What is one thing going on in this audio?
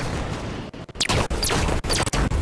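An explosion bursts with a deep boom.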